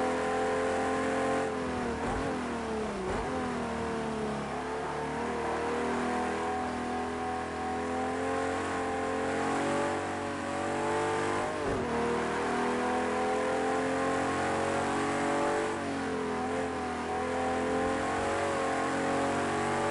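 A racing car engine roars steadily, dropping in pitch at each gear change and climbing again.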